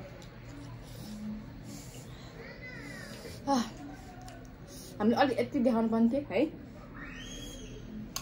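A young woman sips a drink through a straw.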